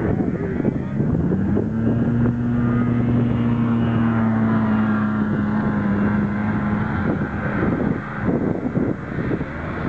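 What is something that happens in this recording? A snowmobile engine drones steadily as the snowmobile rides across the snow.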